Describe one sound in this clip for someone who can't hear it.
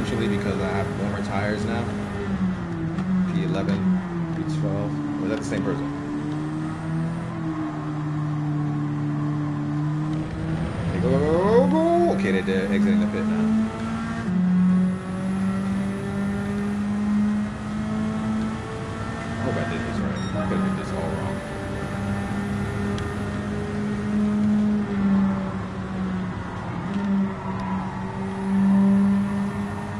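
A racing car engine roars, its pitch rising and falling as it shifts gears.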